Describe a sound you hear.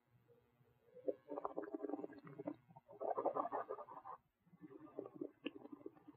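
A man speaks quietly and calmly close by.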